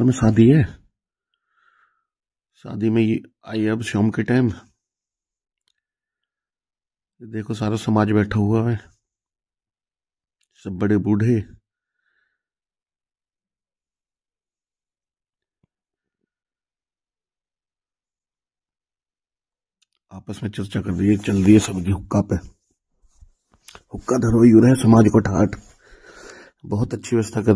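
A man speaks calmly close by, in short bursts with pauses.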